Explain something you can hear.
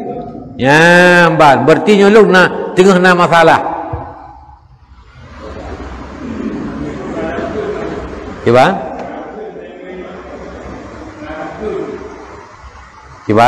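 A middle-aged man speaks with animation into a microphone, his voice ringing in a large echoing hall.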